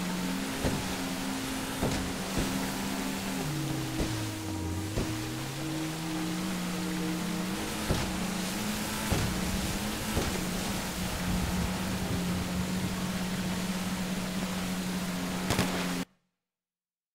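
Water sprays and splashes against a speeding boat hull.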